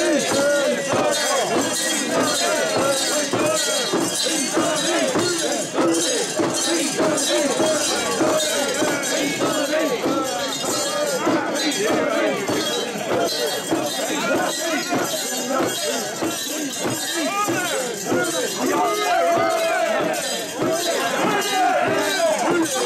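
A large crowd of men chants and shouts loudly and rhythmically close by.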